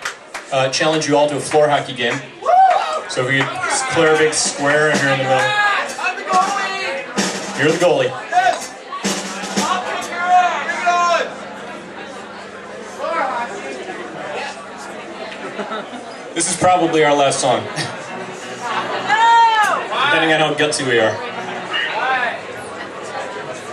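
Drums are struck with sharp hits and cymbal crashes.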